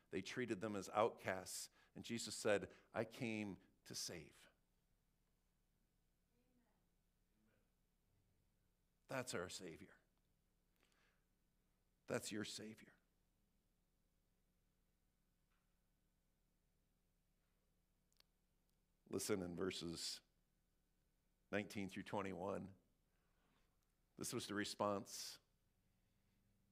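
A middle-aged man speaks calmly through a microphone, pausing often.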